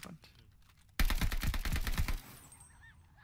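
A rifle fires a rapid, loud burst.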